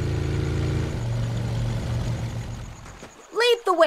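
A boat's engine hums low and steady, then dies away.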